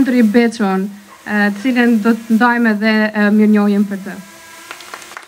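A young woman speaks clearly into a microphone, heard over loudspeakers.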